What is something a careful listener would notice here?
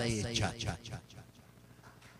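A middle-aged man laughs into a microphone.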